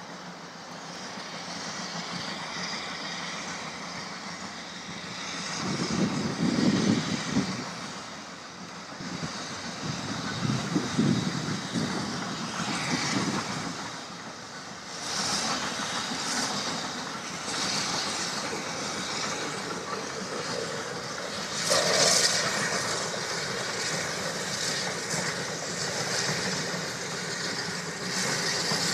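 A steam locomotive chuffs steadily as it hauls a train uphill.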